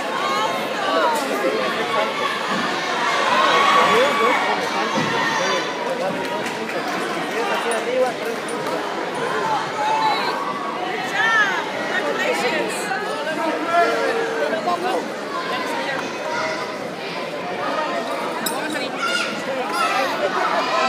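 Children shout and cheer loudly nearby.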